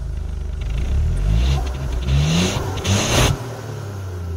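A car engine revs up and down several times.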